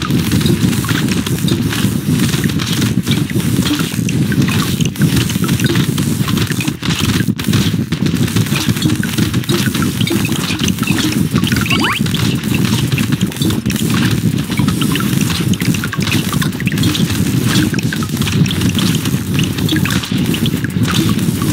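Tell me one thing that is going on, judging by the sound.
Rapid game weapon shots crackle without pause.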